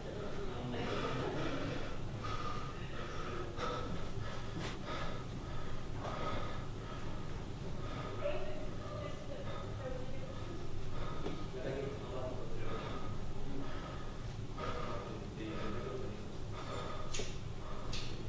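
A young man breathes heavily and unevenly close by.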